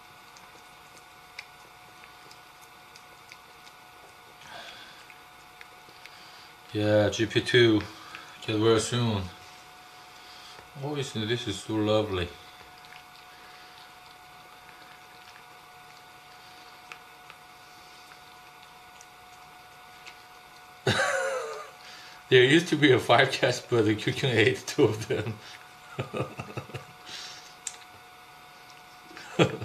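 A cat laps and chews wet food softly.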